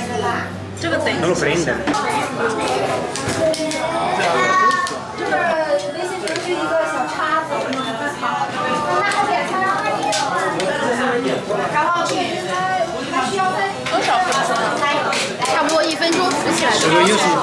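Several adults chatter and laugh around a table, close by.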